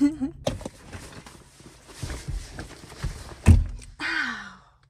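A bag rustles and thumps.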